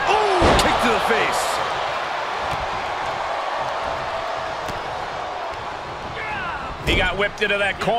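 Heavy blows thud as wrestlers strike each other.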